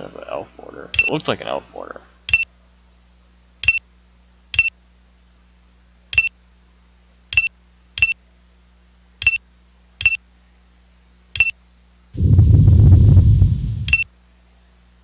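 Short electronic beeps sound at intervals.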